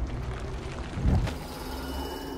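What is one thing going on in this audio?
A person climbs up onto a ledge with a soft thud.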